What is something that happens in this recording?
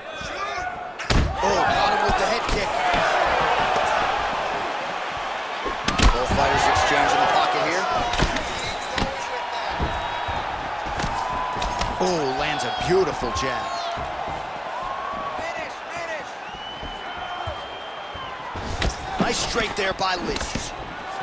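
Kicks and punches land with sharp thuds.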